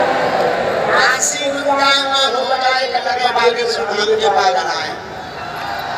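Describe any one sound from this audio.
A man's voice rings out over loudspeakers.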